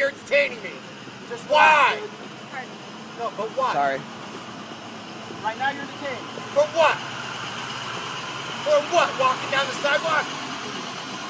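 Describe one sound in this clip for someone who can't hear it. A man talks loudly nearby, in short bursts.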